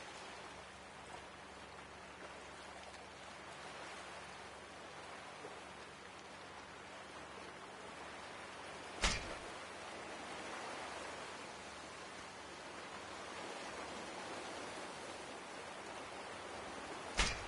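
Water swirls and laps gently.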